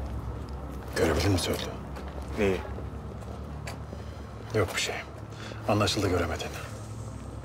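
A man speaks in a low, serious voice close by.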